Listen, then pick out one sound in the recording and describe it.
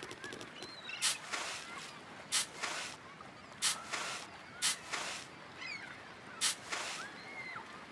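A toy spade scrapes and taps on a bucket.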